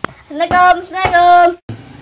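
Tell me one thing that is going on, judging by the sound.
A boy knocks on a wooden door.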